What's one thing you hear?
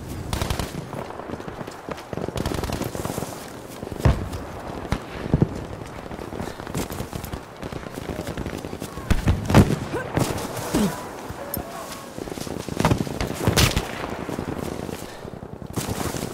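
Footsteps crunch over dry ground and grass.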